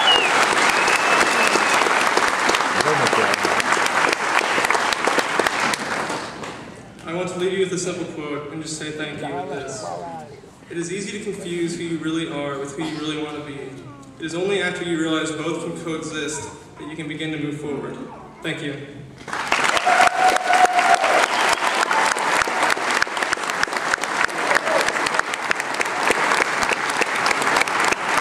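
A large crowd applauds and cheers in a big hall.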